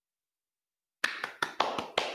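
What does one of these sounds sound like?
A man claps his hands over an online call.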